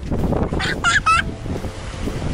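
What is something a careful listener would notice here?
A small child squeals in a high voice nearby.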